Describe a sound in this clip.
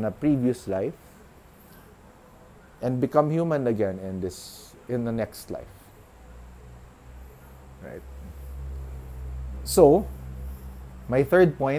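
A middle-aged man speaks calmly and close to the microphone, with pauses.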